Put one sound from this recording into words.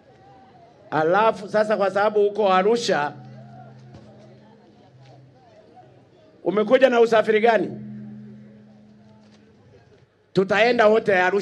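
A man speaks forcefully into a microphone, his voice echoing through loudspeakers outdoors.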